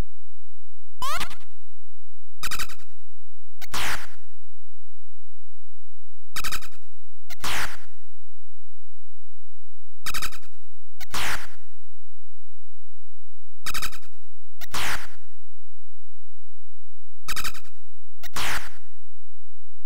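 Short electronic bleeps sound in pairs.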